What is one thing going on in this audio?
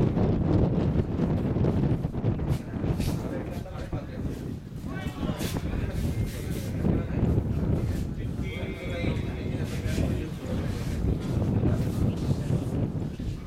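Wind rumbles across an open field.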